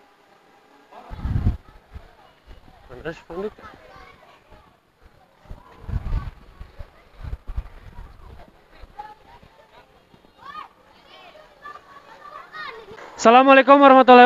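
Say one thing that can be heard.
A crowd of boys chatters and jostles close by.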